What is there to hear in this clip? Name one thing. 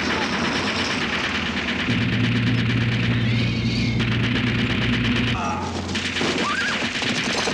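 Men yell as they charge.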